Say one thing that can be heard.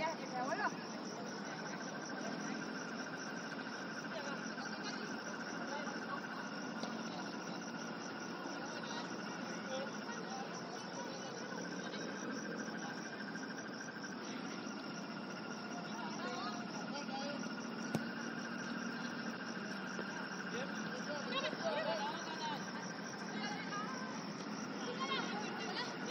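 Young women shout to each other across an open field, far off.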